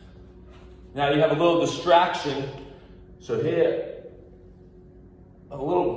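A man speaks calmly and clearly up close, explaining in short bursts.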